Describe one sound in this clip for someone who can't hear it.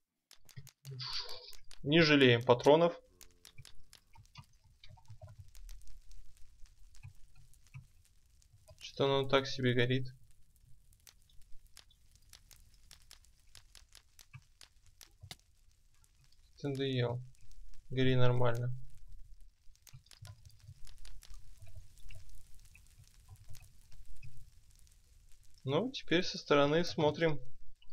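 Fire crackles and pops steadily.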